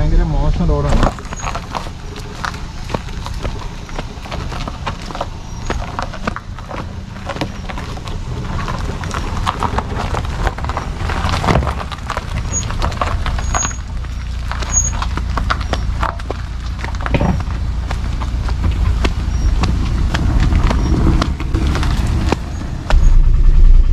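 A car's tyres crunch over loose stones on a rough dirt track.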